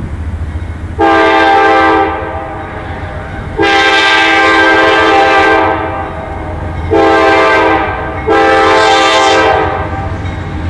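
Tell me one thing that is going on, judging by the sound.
A diesel locomotive air horn sounds in two long and two short blasts.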